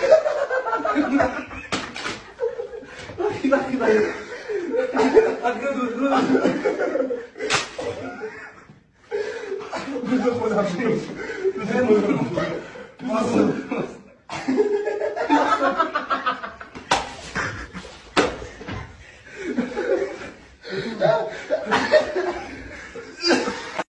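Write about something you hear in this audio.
Young men shout and laugh loudly nearby.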